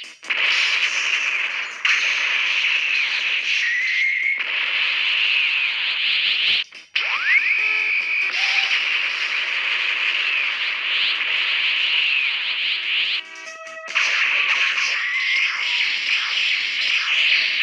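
Energy blasts roar and crackle.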